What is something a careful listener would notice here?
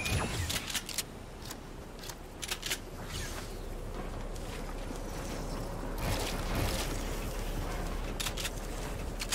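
Game building pieces snap into place with quick, sharp clicks.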